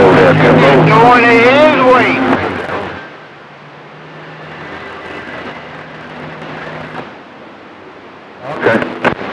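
A radio receiver hisses and warbles through its loudspeaker.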